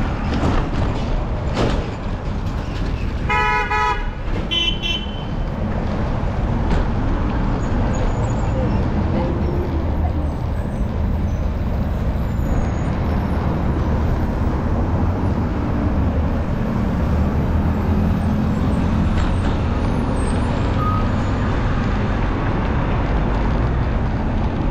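Wind rumbles steadily past a moving rider.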